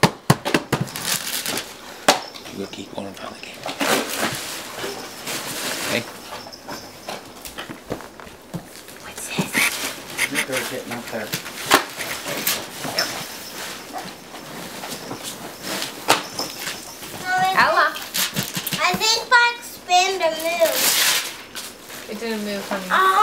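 Wrapping paper crinkles and rustles.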